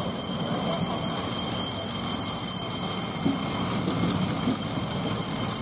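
Passenger coaches roll slowly past, their wheels rumbling and clicking on the rails.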